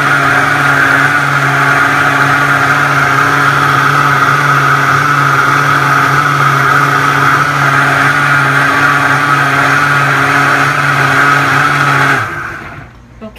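A blender whirs loudly and steadily, then stops.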